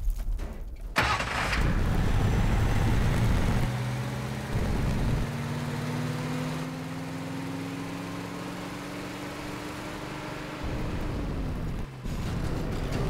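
A truck engine roars and climbs steadily in pitch.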